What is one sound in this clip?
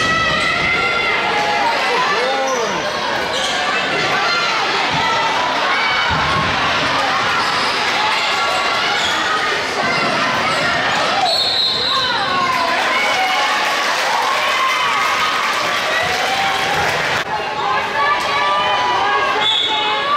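A crowd of young spectators and players shouts and calls out in a large echoing gym.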